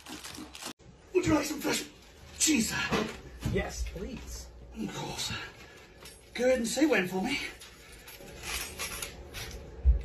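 A man talks and laughs loudly close by.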